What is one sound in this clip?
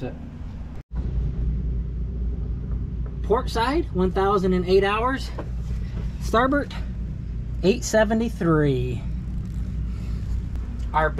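A boat engine idles with a steady low rumble.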